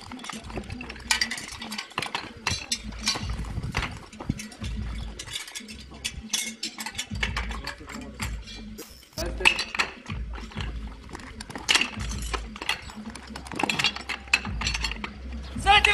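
Metal hose couplings clank as they are snapped together.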